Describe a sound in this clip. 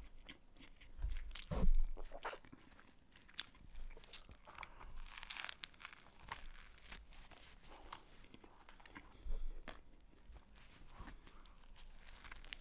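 Crusty bread crunches loudly as it is bitten.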